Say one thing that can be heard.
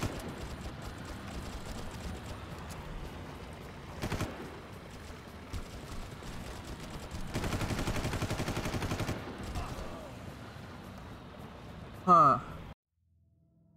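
Water splashes and laps.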